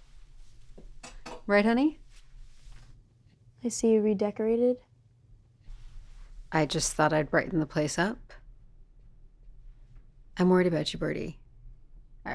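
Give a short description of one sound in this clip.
A teenage girl speaks calmly nearby.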